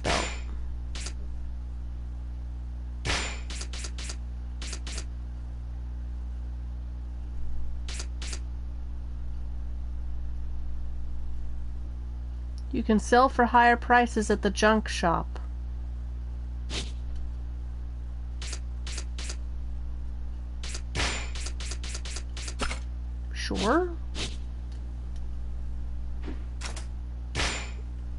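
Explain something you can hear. Short game menu clicks tick now and then.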